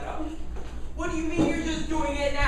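A woman speaks with animation on a stage.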